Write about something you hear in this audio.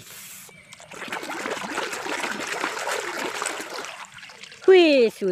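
Water churns and bubbles.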